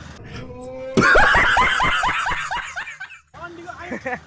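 A man laughs loudly and heartily.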